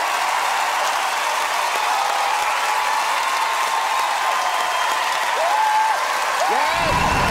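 A large audience cheers and applauds loudly in a big echoing hall.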